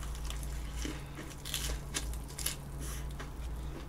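A young woman slurps food up close to a microphone.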